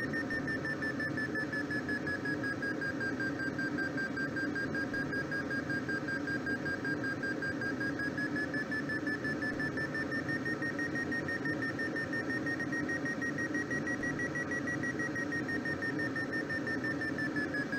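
A glider's variometer sounds a steady tone that slowly shifts in pitch.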